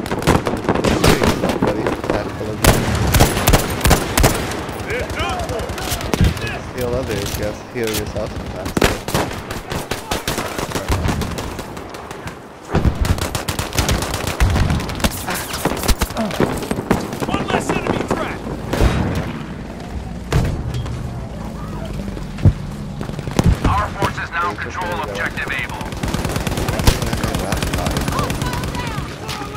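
Rifle shots crack repeatedly.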